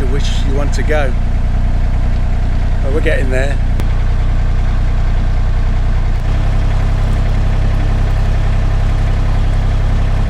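A boat engine chugs steadily at a low pitch.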